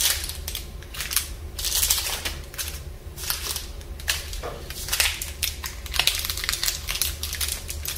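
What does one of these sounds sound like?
Plastic wrappers crinkle and rustle close up.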